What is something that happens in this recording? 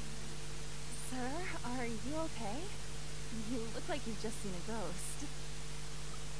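A young woman asks questions in a concerned voice.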